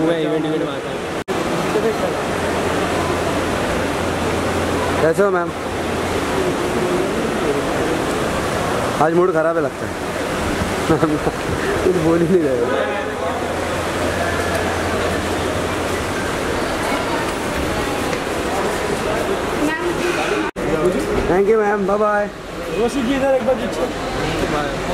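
Several men call out and shout nearby.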